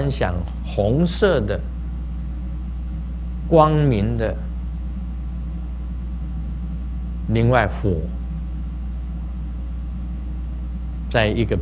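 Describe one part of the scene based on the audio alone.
A man speaks calmly and slowly in short phrases through a microphone.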